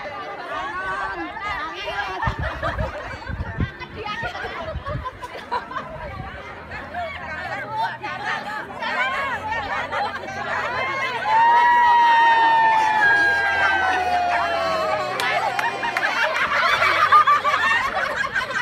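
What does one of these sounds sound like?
A group of young women chatter and laugh outdoors.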